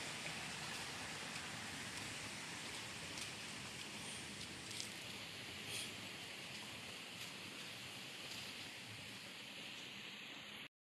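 Footsteps tread on a dry dirt path.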